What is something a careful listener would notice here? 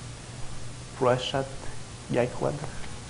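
A man speaks calmly into a microphone, heard in a large room.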